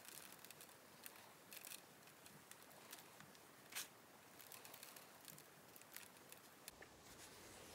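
Fingers crumble and rub a dry ball of earth with soft crackles and scratches.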